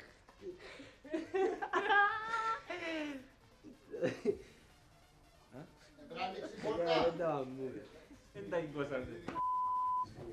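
A man talks and laughs with animation.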